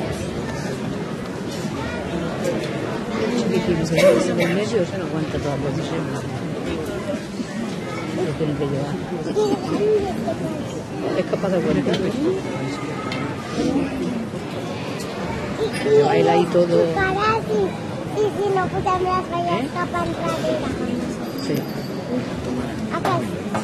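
A crowd of onlookers chatters on the street nearby.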